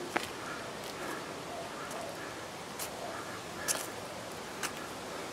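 Footsteps thud and scuff on paving stones at a steady pace.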